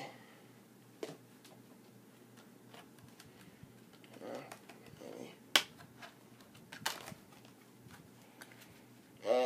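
A plastic disc case clicks and rattles in hands.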